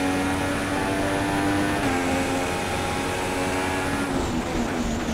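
A Formula One car engine screams at high revs.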